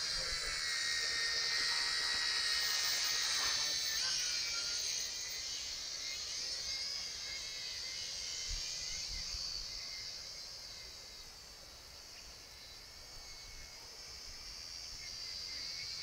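A small drone's propellers buzz with a high whine, loud overhead and fading as it flies off.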